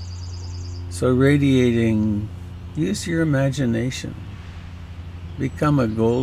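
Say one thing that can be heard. An elderly man speaks calmly and close through a headset microphone.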